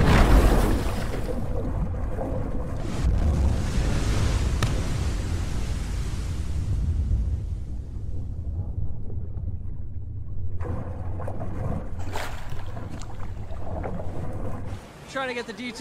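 Water rushes and churns underwater with a deep rumble.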